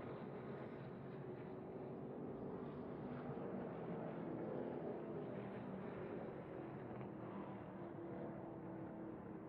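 Several other race truck engines drone and whine nearby.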